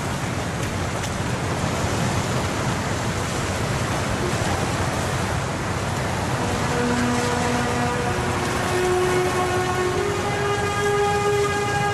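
Sea waves crash and surge loudly nearby.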